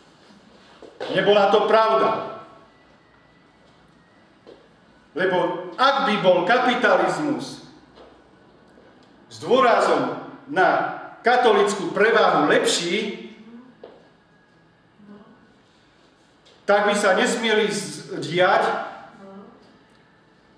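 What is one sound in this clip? A middle-aged man speaks with animation in short bursts with pauses.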